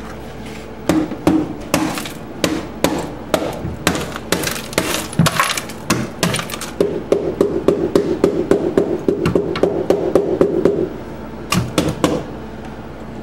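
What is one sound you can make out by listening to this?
A brush scrubs a hard surface with quick, rough strokes.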